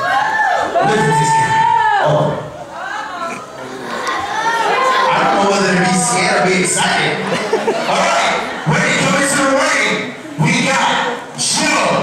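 A crowd of children cheers and shouts.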